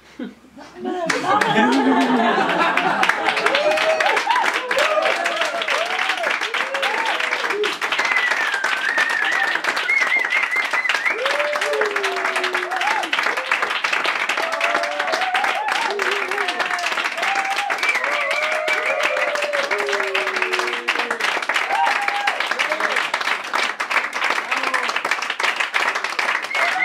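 An accordion plays a lively folk tune.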